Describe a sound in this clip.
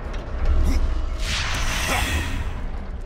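A magical energy burst whooshes and crackles.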